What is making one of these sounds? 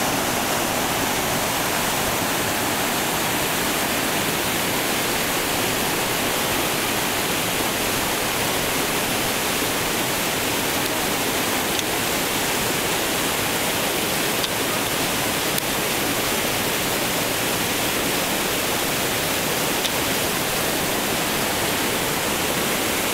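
A rushing stream roars loudly close by.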